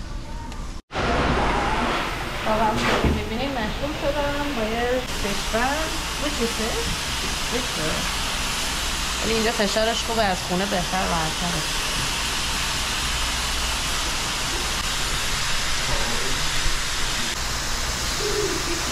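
A pet dryer blows air with a steady, loud rush.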